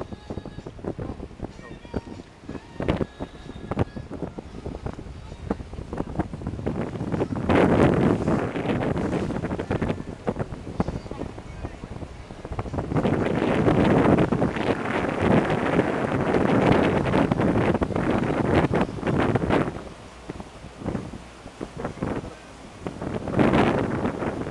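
Wind buffets loudly, outdoors on open water.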